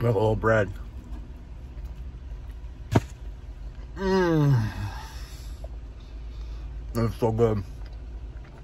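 A man murmurs and groans with pleasure close by.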